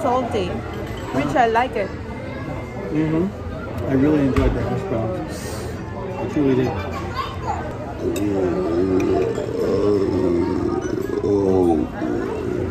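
A crowd of diners murmurs in the background.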